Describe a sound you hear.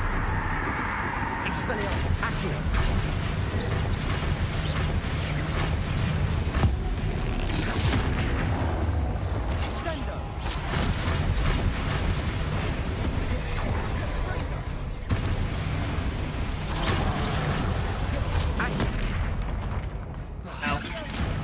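Heavy thuds and crashes of a fight ring out with echo.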